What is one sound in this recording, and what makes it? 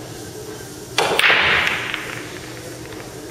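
A cue ball strikes a rack of pool balls, which clatter and scatter across the table.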